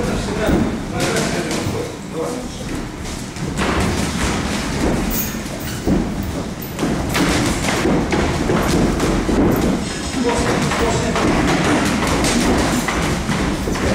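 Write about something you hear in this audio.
Boxing gloves thud against each other in quick bursts.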